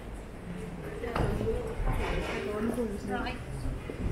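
Two women talk quietly as they walk past close by.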